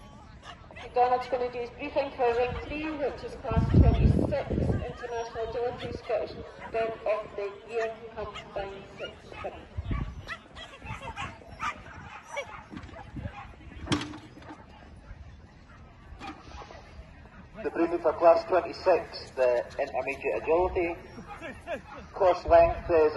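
A man calls out commands to a dog outdoors.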